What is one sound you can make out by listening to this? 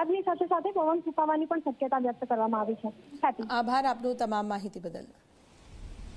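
A woman speaks steadily over a phone line.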